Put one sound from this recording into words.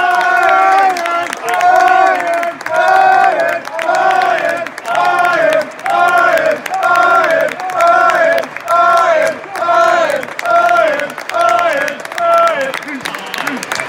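A crowd of men chants loudly in a steady rhythm outdoors.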